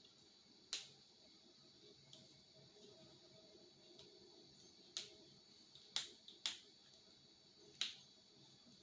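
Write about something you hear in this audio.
Plastic marker caps click sharply.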